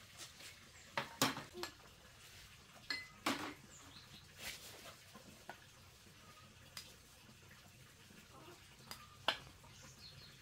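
A spoon clinks and scrapes against a bowl.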